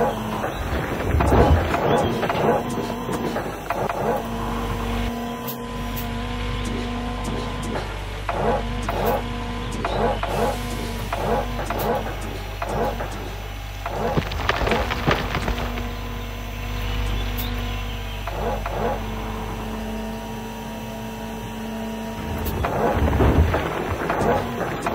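An excavator engine hums steadily.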